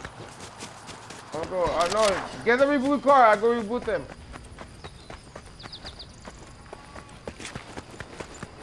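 Quick footsteps patter on the ground.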